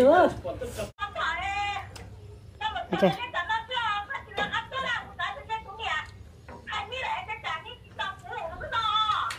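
Young women talk and chatter with animation close by.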